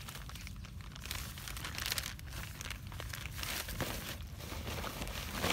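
Dry leaves and twigs rustle and crackle close by.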